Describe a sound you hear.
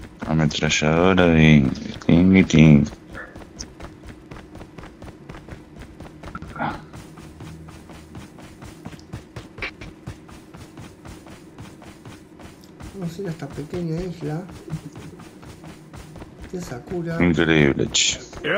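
Quick footsteps run over hard ground and grass.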